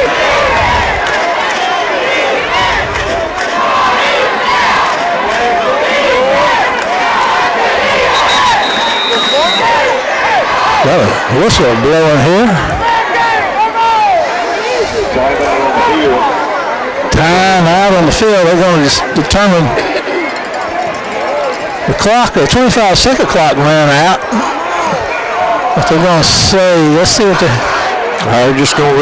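A crowd cheers and chatters outdoors.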